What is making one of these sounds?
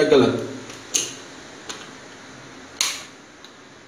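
A wall switch clicks.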